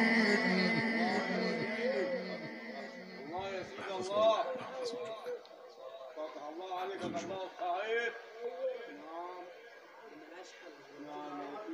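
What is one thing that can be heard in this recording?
An elderly man chants in a long, melodic voice through a microphone and loudspeakers.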